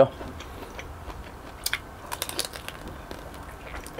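A young man bites into crispy pork with a loud crunch.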